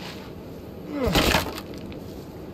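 Wooden boards crack and splinter as they are broken apart.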